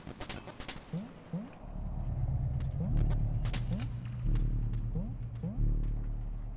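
Short rising chirps of game sound effects blip now and then.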